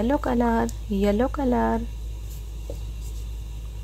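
A small plastic paint pot taps down onto paper on a table.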